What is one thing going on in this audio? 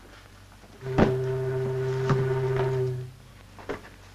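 A steamboat whistle blows with a steady tone.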